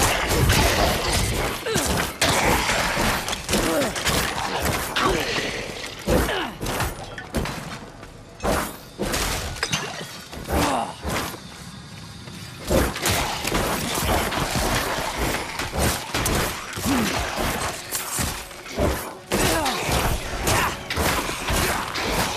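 Creatures groan and shriek as they are struck.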